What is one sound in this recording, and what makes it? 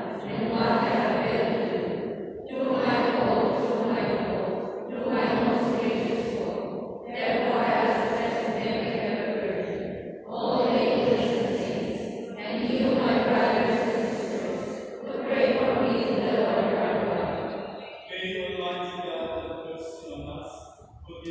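A congregation of men and women sings together in phrases, echoing through a large hall.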